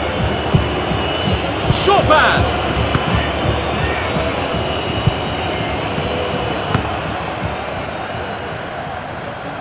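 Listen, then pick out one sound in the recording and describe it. A stadium crowd roars steadily and slowly fades.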